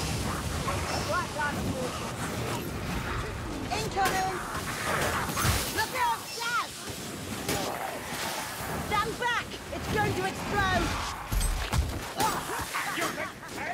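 Creatures screech and snarl close by.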